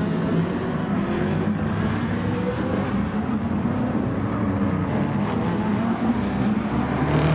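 Racing car engines roar loudly as several cars speed past.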